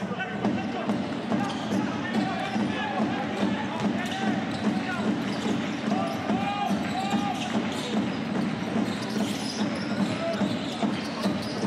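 A basketball bounces on a hard court in a steady rhythm.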